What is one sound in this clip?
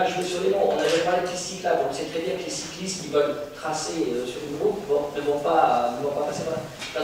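A middle-aged man speaks steadily through a microphone in a room with some echo.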